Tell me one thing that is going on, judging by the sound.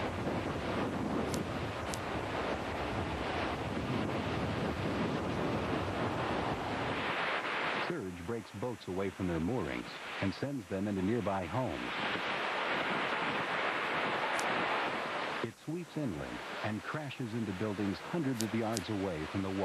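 Waves crash and surge ashore.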